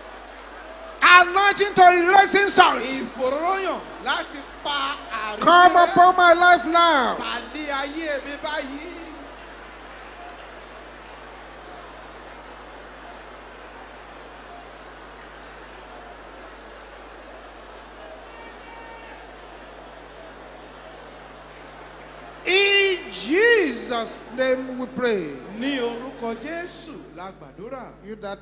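A man prays loudly and forcefully through a microphone in a large echoing hall.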